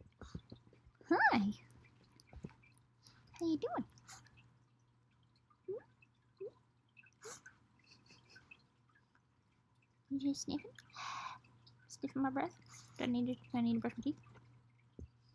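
A young woman talks softly and playfully close by.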